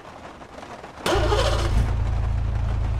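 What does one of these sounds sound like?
A car engine starts with a turn of the key.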